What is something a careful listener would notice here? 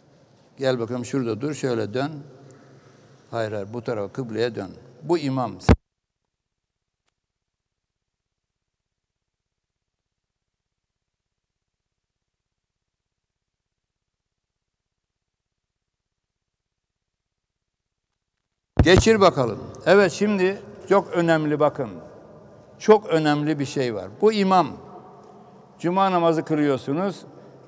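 An elderly man speaks with animation into a microphone in an echoing hall.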